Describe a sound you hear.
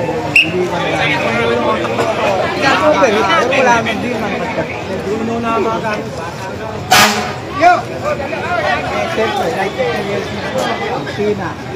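Several men talk and shout over one another close by.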